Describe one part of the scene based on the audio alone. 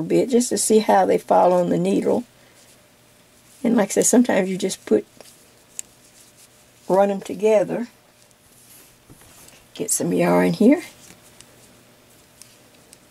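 Knitting needles click softly.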